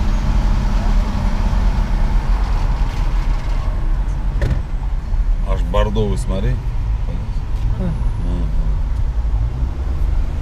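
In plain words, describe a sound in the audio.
Road noise rumbles steadily from inside a moving car.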